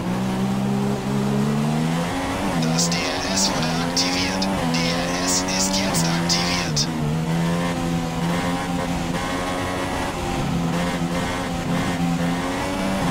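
A racing car engine whines loudly, its pitch rising and dropping through the gear changes.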